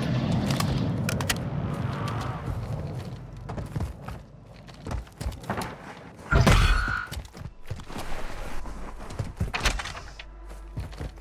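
Footsteps crunch quickly over dirt and stone floors.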